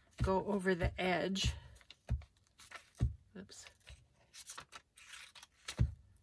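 Paper rustles and crinkles as it is handled.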